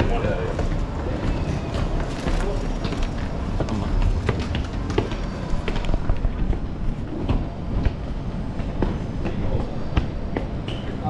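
Footsteps climb stone stairs and then walk across a hard floor.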